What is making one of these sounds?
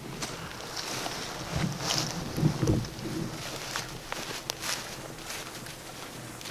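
Footsteps crunch on dry grass.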